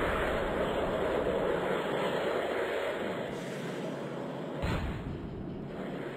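Twin rocket boosters roar.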